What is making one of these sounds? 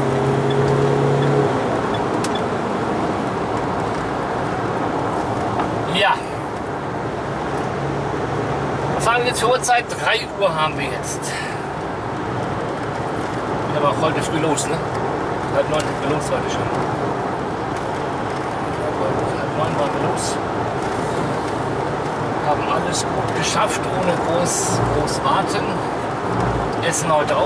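A car engine hums steadily with road noise from inside the car.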